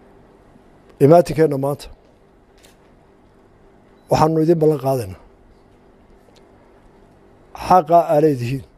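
An older man speaks into a microphone in short, deliberate phrases with pauses between them.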